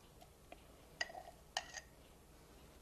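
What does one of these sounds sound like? A glass jar clinks against a hard countertop.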